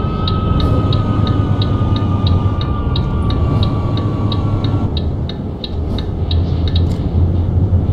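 A turn signal ticks rapidly and evenly.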